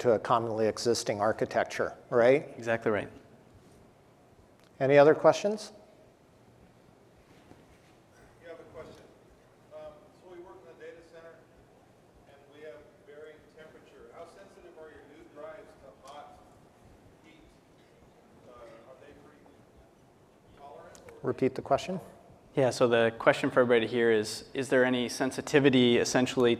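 A man speaks into a microphone, amplified in a large hall.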